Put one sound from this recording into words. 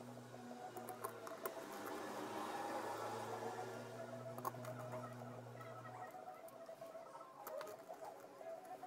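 Fingers tap and click against a metal hard drive on a table.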